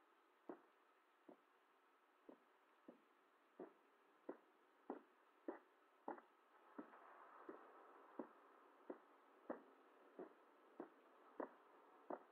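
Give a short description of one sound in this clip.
Footsteps fall at a steady walking pace on a hard floor.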